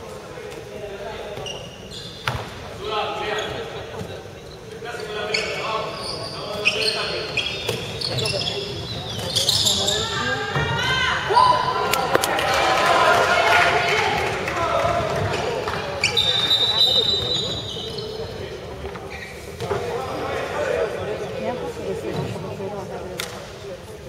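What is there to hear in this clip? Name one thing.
A ball bounces on a wooden floor.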